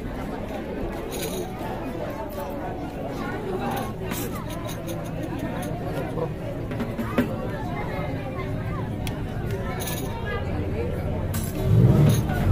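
Tambourines jingle and rattle in rhythm.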